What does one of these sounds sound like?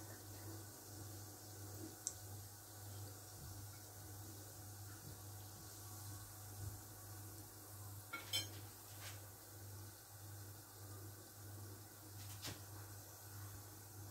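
Hot oil sizzles and bubbles steadily in a pan.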